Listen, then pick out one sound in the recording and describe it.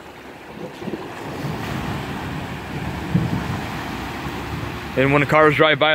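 A van drives through deep floodwater, its tyres splashing and swishing.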